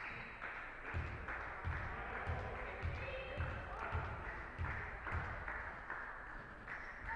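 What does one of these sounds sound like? A basketball bounces repeatedly on a hard floor in an echoing hall.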